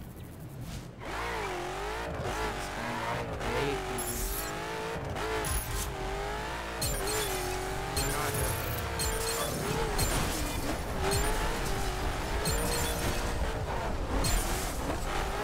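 A sports car engine roars and revs as the car speeds along.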